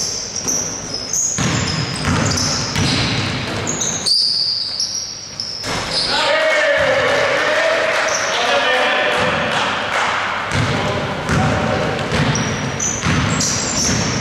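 Players' footsteps thump and patter across the court.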